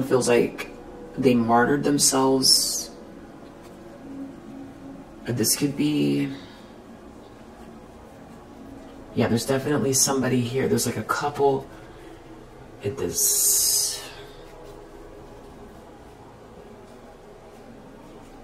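Stiff cards slide against each other in a hand.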